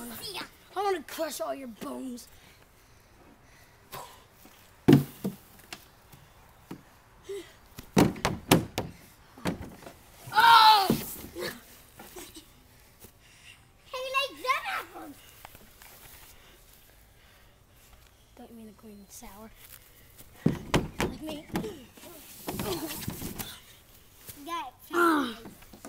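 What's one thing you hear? Children talk and shout excitedly outdoors.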